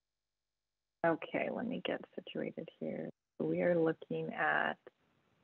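A second woman speaks calmly through an online call.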